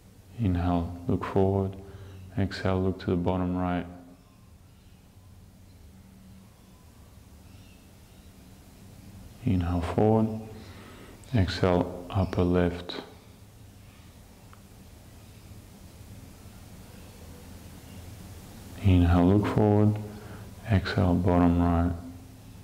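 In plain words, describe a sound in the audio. A man speaks calmly and slowly nearby, with long pauses.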